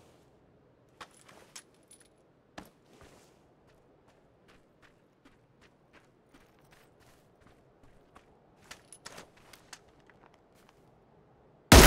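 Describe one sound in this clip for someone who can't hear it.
Footsteps rustle softly through dry grass.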